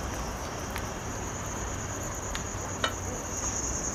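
A pot lid clinks against a metal pot.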